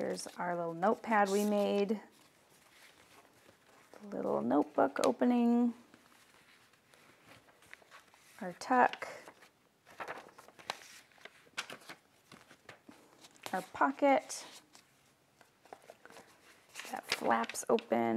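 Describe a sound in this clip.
Paper rustles softly as it is handled and folded.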